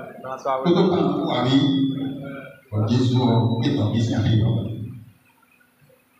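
An adult man speaks forcefully through a microphone and loudspeaker.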